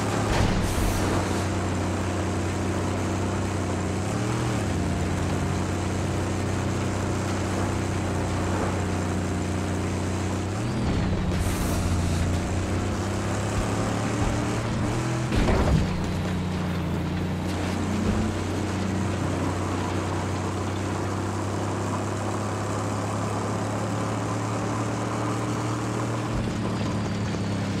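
A car engine roars steadily as it drives.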